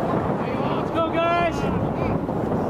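A man yells loudly nearby.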